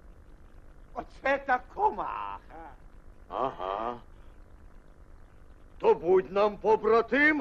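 A man speaks in a deep cartoon voice.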